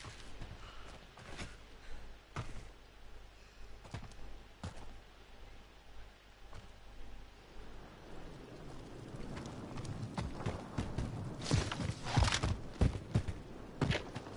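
Footsteps crunch on dry, rocky ground.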